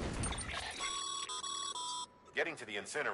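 Short electronic chimes beep.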